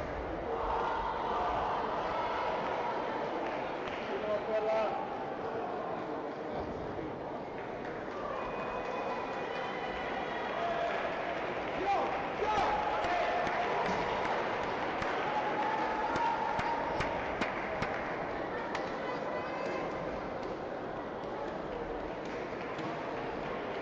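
People talk in a low murmur in a large echoing hall.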